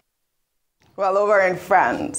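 A woman speaks clearly and warmly into a microphone.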